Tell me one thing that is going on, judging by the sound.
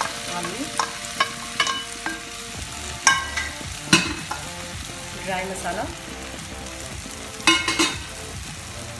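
A metal bowl clinks against the rim of a pan.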